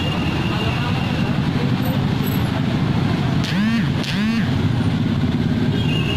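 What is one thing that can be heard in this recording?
A motorcycle engine buzzes as it rides past.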